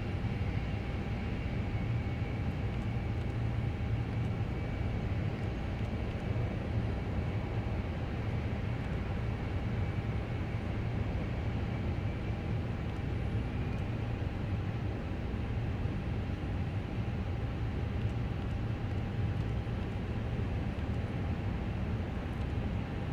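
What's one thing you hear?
A steady low cockpit hum drones on.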